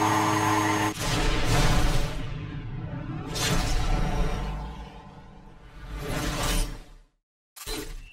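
A sports car whooshes past, engine revving.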